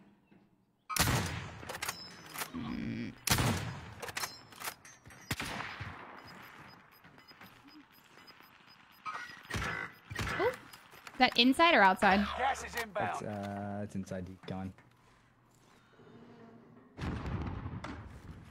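A sniper rifle fires loud sharp shots.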